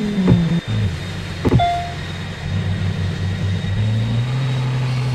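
A sports car engine hums and revs.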